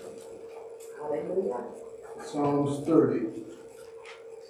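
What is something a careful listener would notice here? A man speaks slowly into a microphone, heard through a loudspeaker in an echoing room.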